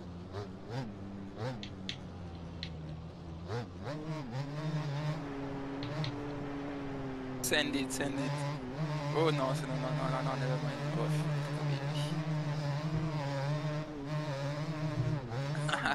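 A quad bike engine hums and revs steadily.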